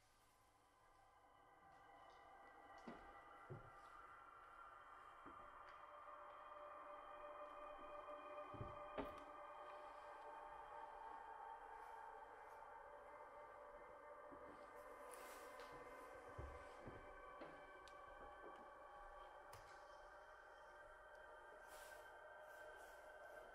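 A droning chord of steady electronic tones swells slowly from loudspeakers and holds.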